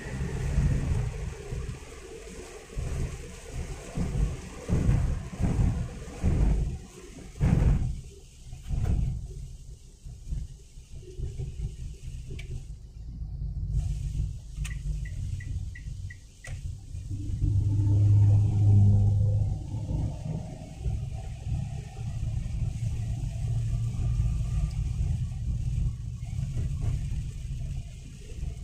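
Windscreen wipers thump and squeak across the glass.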